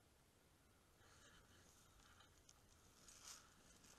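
Dry bracken rustles and crunches underfoot.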